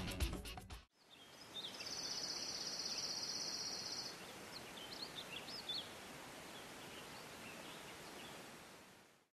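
Wind blows outdoors, rustling tall grass.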